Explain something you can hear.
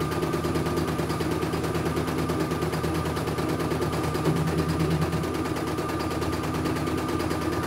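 An embroidery machine hums and stitches rapidly with a steady rattling beat.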